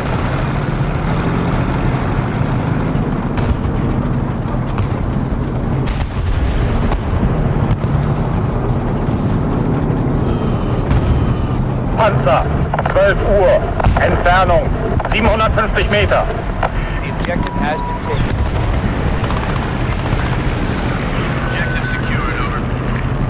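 A tank engine rumbles steadily close by.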